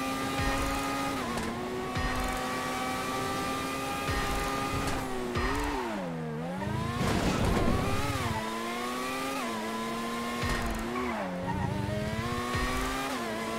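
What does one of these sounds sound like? An open-wheel racing car's engine screams at high revs.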